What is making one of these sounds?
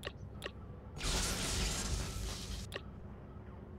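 Loud electronic static hisses in a short burst.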